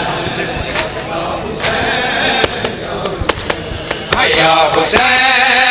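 A crowd of men chants loudly, heard through a loudspeaker in a large echoing space.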